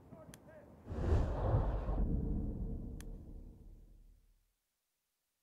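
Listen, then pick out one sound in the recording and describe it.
A loud explosion booms and rumbles slowly away.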